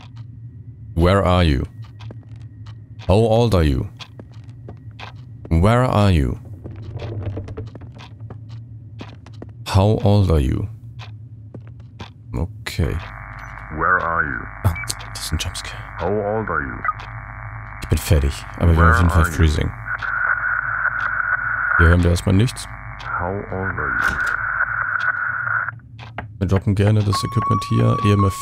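A man talks into a close microphone, calmly and in short bursts.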